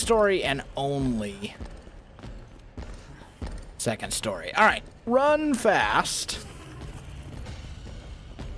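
Footsteps run quickly up hard stairs.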